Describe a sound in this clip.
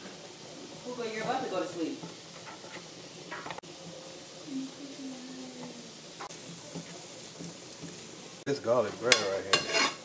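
Bread slices sizzle in butter in a frying pan.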